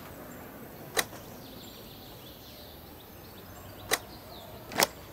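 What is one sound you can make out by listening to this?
Button clicks sound sharply.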